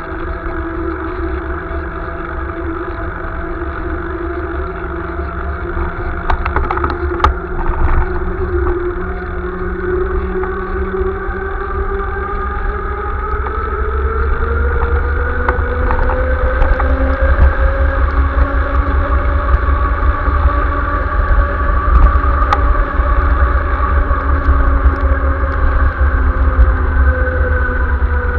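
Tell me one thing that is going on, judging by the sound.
Wind buffets and rumbles steadily while cycling outdoors.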